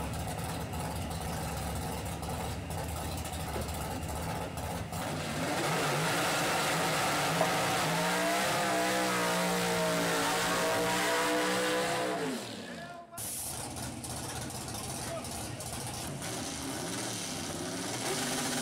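A drag racing engine idles with a loud, rough rumble.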